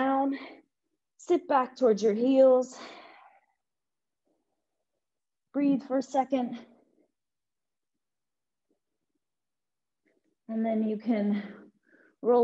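A young woman talks calmly into a close microphone, with pauses.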